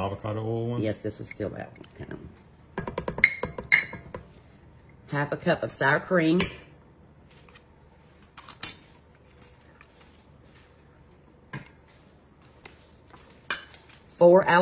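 A metal measuring cup knocks against a metal bowl.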